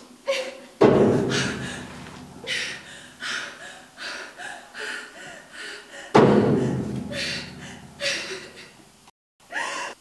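A young woman sobs quietly nearby.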